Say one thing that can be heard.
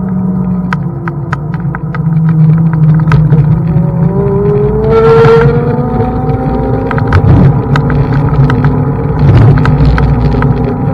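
Bicycle tyres roll steadily over smooth asphalt.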